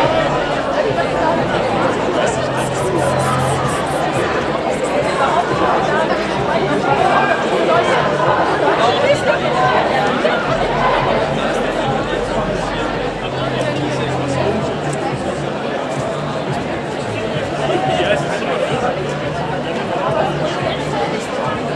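A large crowd of marchers chatters and calls out nearby, outdoors.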